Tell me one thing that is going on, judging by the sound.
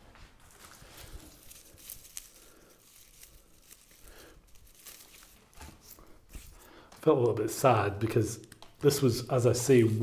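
Plant stems rustle softly as a man handles them.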